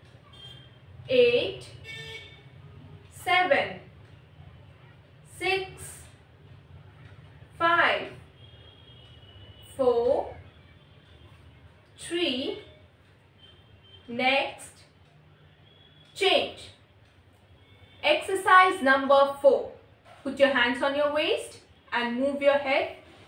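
A young woman counts aloud in short, clear calls, then speaks in longer phrases.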